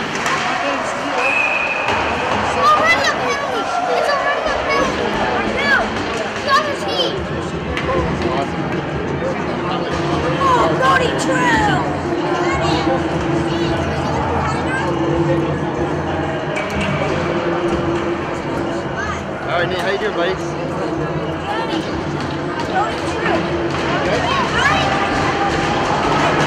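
Young men shout to each other across the rink.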